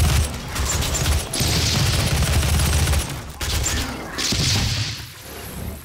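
Fireballs explode and crackle nearby.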